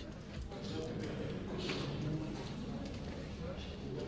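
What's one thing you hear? A middle-aged man speaks calmly close to a microphone.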